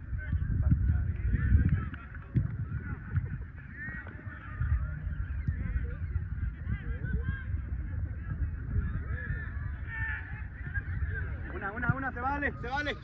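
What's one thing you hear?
Young women call out to each other across an open field.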